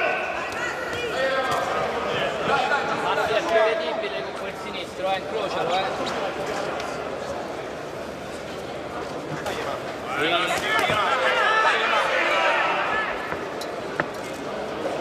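Boxing gloves thud as punches land.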